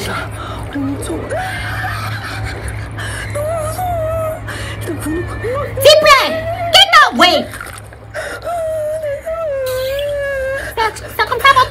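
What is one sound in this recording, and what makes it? A young woman cries out and whimpers in distress.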